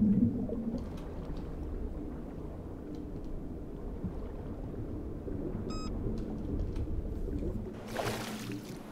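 Water rumbles and gurgles, muffled as if heard underwater.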